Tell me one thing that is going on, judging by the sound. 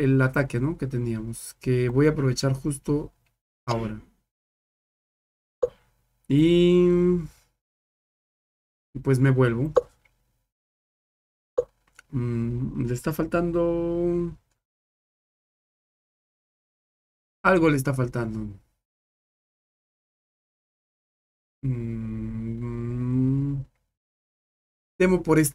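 A young man talks into a close microphone in short bursts, with pauses.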